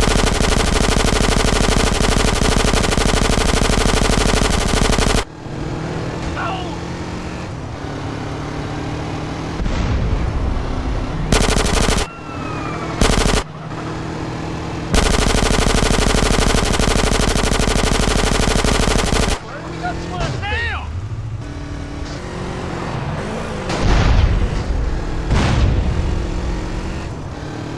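A motorcycle engine roars steadily as it rides along.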